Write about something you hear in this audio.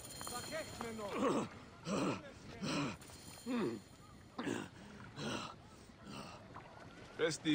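A man pants and puffs heavily.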